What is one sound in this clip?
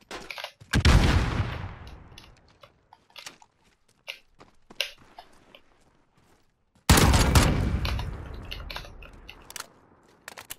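A rifle fires a loud shot that booms and echoes away.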